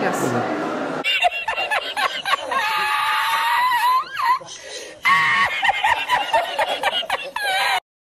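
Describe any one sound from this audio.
A middle-aged man laughs loudly and heartily.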